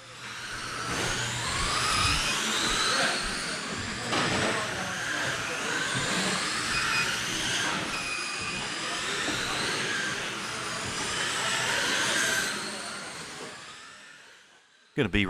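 Small electric racing cars whine at high pitch as they speed around a track.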